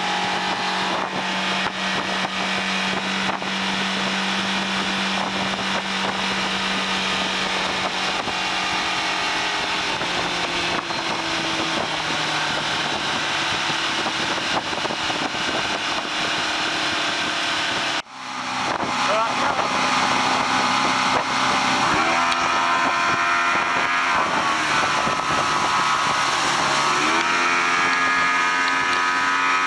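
Water rushes and hisses behind a speeding boat.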